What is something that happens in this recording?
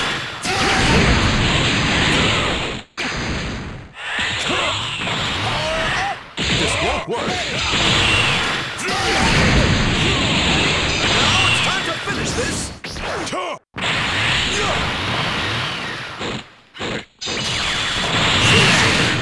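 Energy blasts roar and explode loudly.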